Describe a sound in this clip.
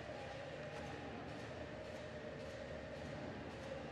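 Ice skates scrape across the ice.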